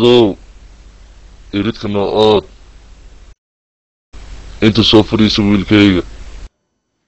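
An elderly man speaks with feeling, close to the microphone.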